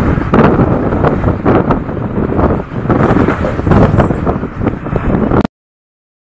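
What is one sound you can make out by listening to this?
Strong wind buffets the microphone in loud gusts outdoors.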